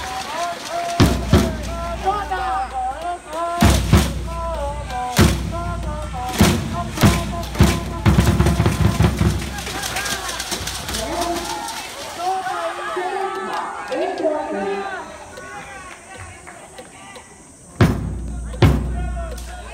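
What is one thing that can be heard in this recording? A bass drum booms in a steady beat.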